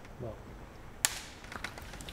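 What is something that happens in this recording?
A clapperboard snaps shut with a sharp clack.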